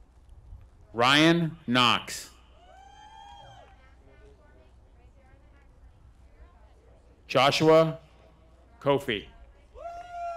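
A man announces names through a microphone over loudspeakers outdoors.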